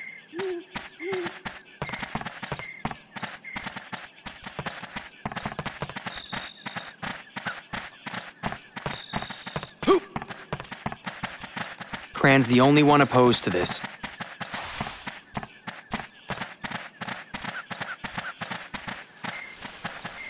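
Footsteps patter quickly on the ground.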